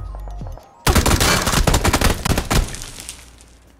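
Rapid gunshots fire at close range and echo.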